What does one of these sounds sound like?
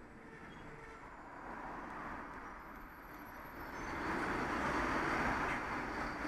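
A large truck's engine idles loudly close by.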